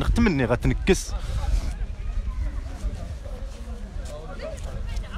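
A crowd of people talks quietly in the distance.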